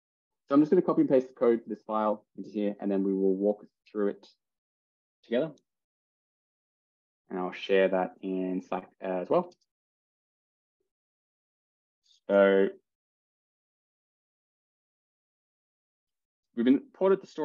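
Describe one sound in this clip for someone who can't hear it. A man talks calmly over an online call, in short bursts with pauses.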